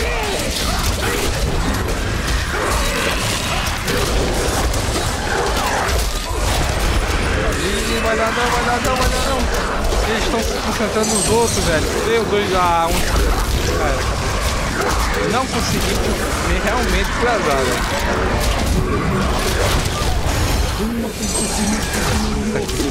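Magical blasts crackle and boom in a fast, dense battle.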